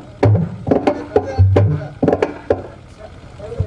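A drum beats in sharp strokes.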